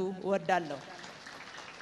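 A woman speaks into a microphone through loudspeakers.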